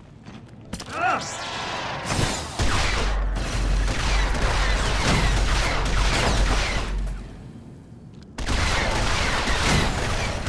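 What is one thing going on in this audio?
Blaster shots crack in rapid bursts.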